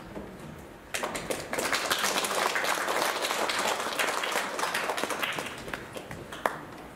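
A woman plucks a stringed lute.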